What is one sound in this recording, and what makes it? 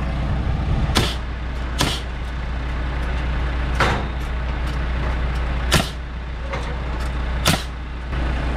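A nail gun fires sharp bangs, one at a time.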